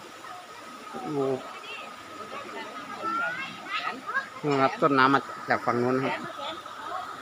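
A woman talks briefly nearby, outdoors.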